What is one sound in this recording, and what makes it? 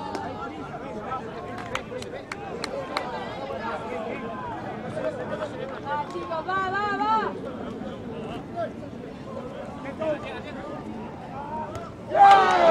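A crowd of spectators shouts and chatters outdoors.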